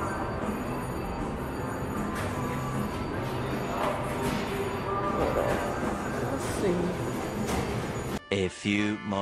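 Slot machines chime and jingle in a noisy room.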